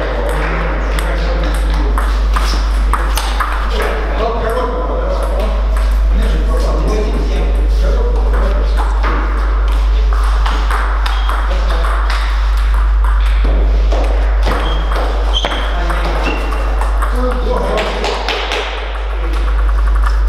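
Many people talk in the background of a large echoing hall.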